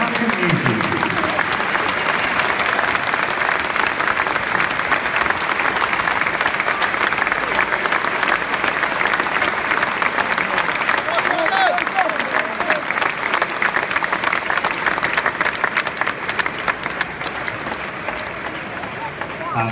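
A crowd claps hands.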